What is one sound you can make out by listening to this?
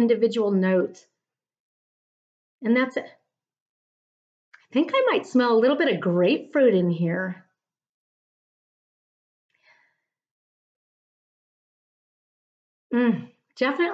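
A woman speaks calmly and warmly into a microphone, close by.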